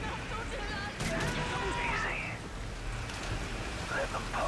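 Water splashes heavily.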